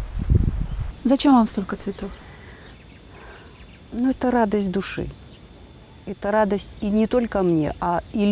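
A middle-aged woman speaks calmly into a close microphone.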